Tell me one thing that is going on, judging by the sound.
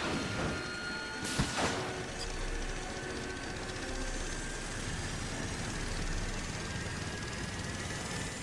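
A machine engine whirs and rumbles.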